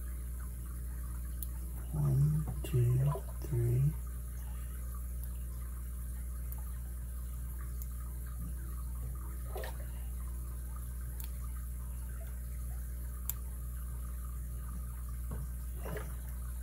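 Metal lock picks scrape and click faintly inside a padlock.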